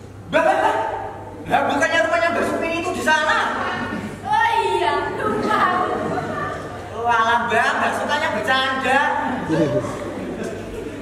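A young man speaks loudly in a large echoing hall.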